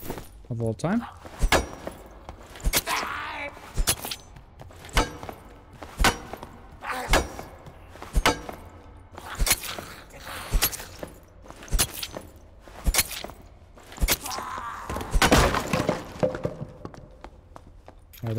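Footsteps thud at a steady walking pace on a hard floor.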